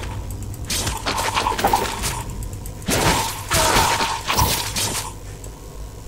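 Metal blades clash and strike in a quick flurry of blows.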